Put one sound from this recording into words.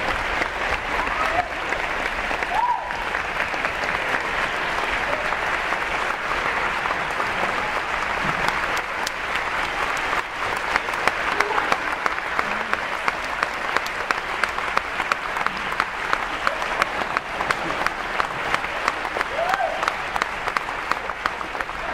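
A large audience applauds loudly in a big hall.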